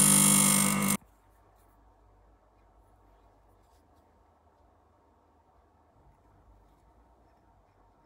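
Small metal tools click and scrape quietly.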